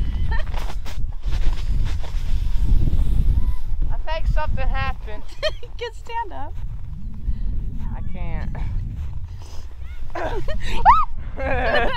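A sled slides and scrapes over snow.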